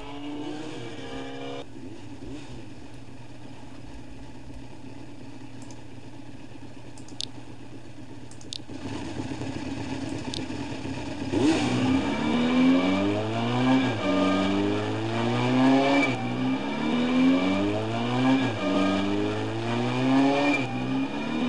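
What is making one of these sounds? A motorcycle engine idles and then revs up repeatedly through the gears.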